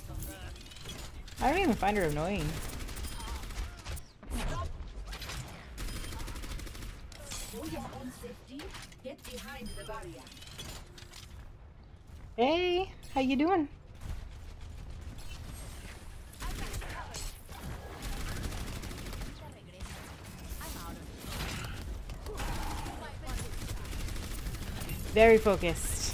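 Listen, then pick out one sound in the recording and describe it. Gunfire crackles rapidly from a video game.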